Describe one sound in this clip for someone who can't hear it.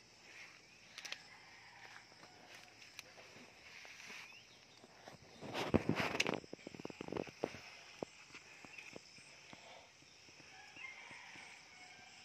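Garden shears snip through fruit stems with sharp clicks.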